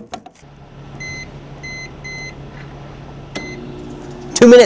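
A microwave keypad beeps as buttons are pressed.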